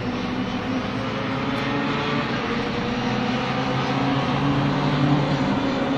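Small racing car engines drone past on a track, rising and falling in pitch.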